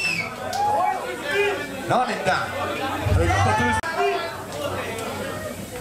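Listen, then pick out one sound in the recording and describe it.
A man shouts and sings loudly into a microphone through loudspeakers.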